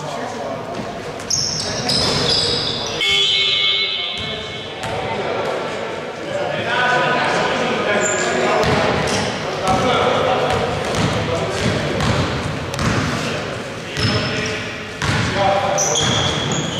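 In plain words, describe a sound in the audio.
Sneakers squeak on a wooden court floor in a large echoing hall.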